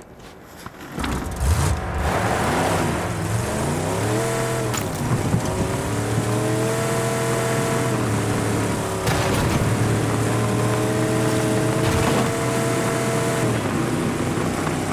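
A car engine starts and revs up, then roars steadily as the car speeds along.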